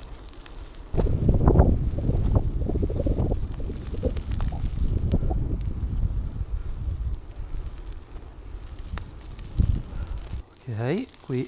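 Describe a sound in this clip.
Wind buffets the microphone in strong gusts.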